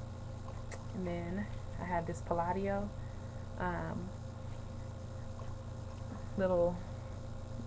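A young woman talks calmly and close to a microphone, in short phrases.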